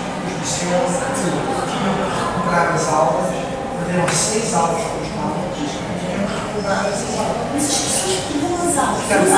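A man speaks steadily into a microphone in an echoing room.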